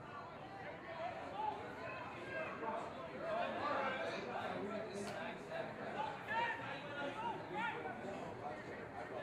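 Men shout to each other across an open outdoor field.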